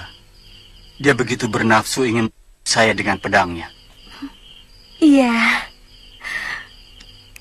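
Several women talk with each other, close by.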